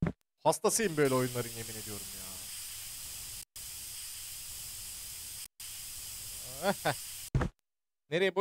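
A paint sprayer hisses steadily.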